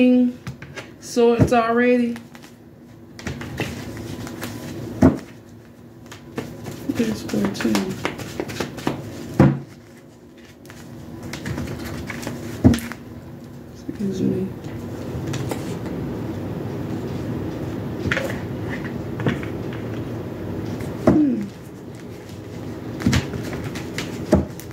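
Cards shuffle and riffle in a woman's hands.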